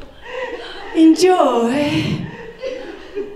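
A woman laughs into a microphone.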